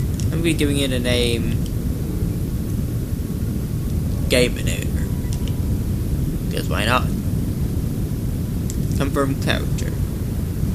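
A young man talks casually into a headset microphone, in short bursts.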